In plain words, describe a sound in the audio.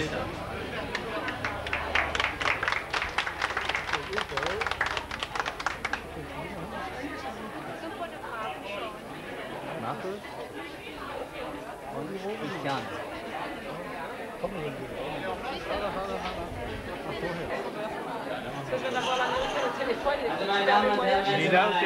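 A crowd chatters in a busy indoor space.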